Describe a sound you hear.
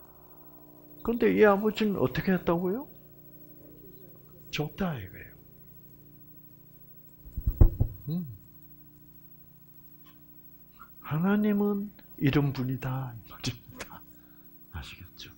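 An elderly man speaks calmly in short bursts with pauses.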